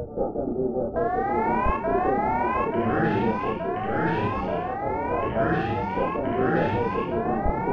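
Rising electronic zaps repeat quickly.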